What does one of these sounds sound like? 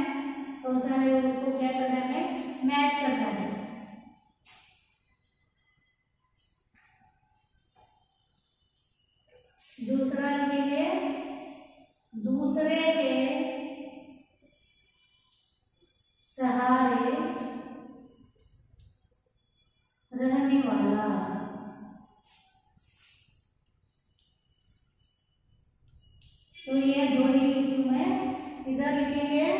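A woman speaks clearly and slowly, in short bursts with pauses, close by.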